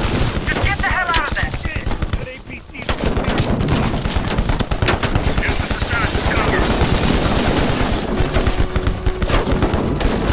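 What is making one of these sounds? Explosions boom and rumble with debris clattering.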